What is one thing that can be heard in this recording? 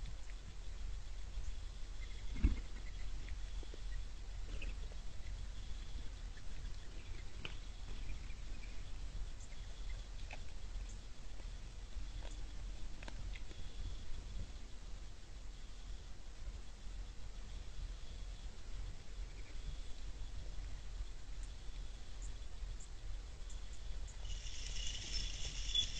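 A deer crunches and nibbles corn close by.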